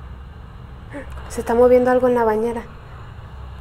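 A young woman cries out loudly, close to a microphone.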